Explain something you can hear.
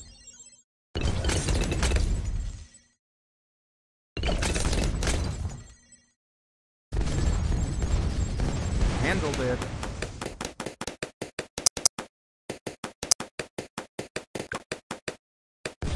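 Tower defence game sound effects pop and burst in quick runs.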